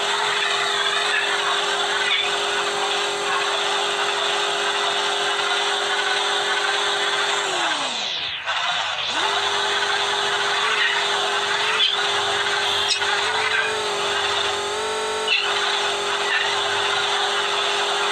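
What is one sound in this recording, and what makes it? A cartoonish engine hums steadily, then briefly drops in pitch and cuts out before starting again.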